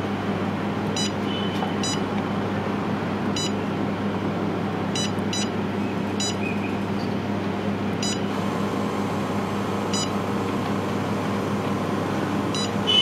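A touchscreen device gives short electronic beeps.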